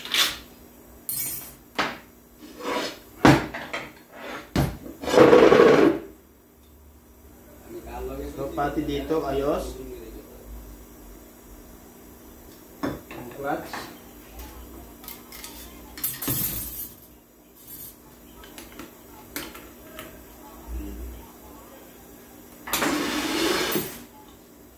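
Metal transmission parts clink and clatter as they are handled.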